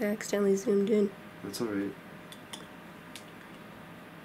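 A spoon clinks against a small glass jar.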